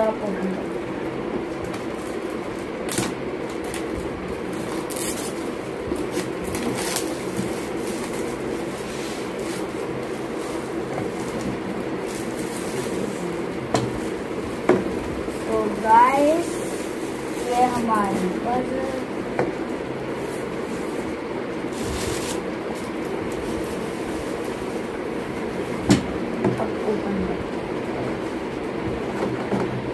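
A cardboard box slides and taps on a table.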